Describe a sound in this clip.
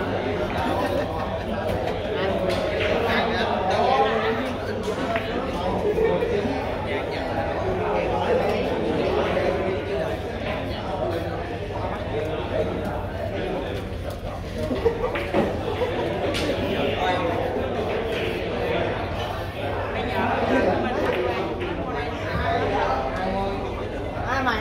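A crowd of men murmur in the background of a large hall.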